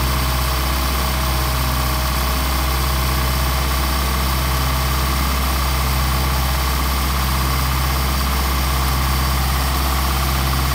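An engine idles steadily with a low, even rumble.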